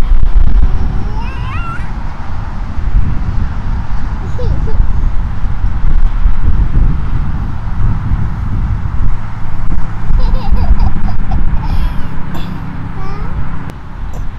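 Young children babble and coo softly nearby.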